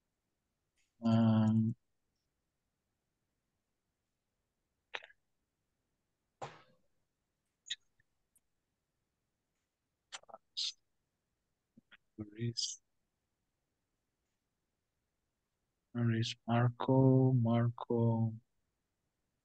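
A man speaks briefly through an online call, with pauses between words.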